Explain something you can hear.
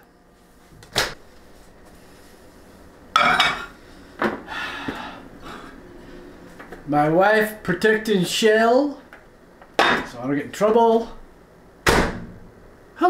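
A microwave door clicks open and shut.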